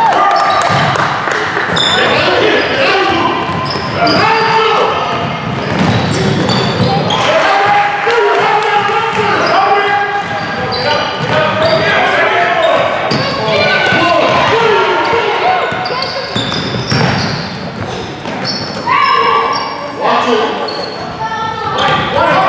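A basketball bounces on the floor with echoes in a large hall.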